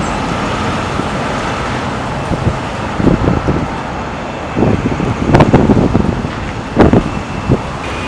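A pickup truck engine rumbles as the truck drives by.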